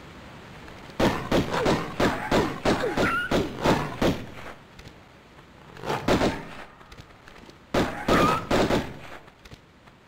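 Pistols fire in quick bursts of shots.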